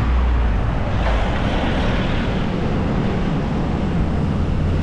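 A truck drives past close by.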